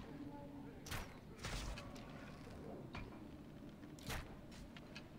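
An arrow whooshes off a bowstring with a sharp twang.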